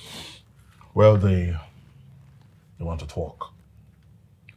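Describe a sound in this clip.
Another man answers calmly, close by.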